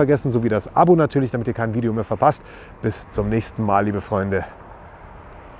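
A man talks calmly close to the microphone.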